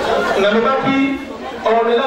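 A woman speaks into a microphone, heard through loudspeakers.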